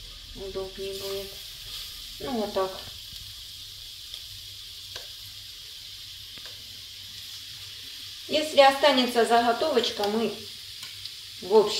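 Chopped food drops into a frying pan with soft taps.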